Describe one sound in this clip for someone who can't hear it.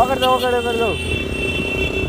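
A motorcycle engine revs and whines as it rides past close by.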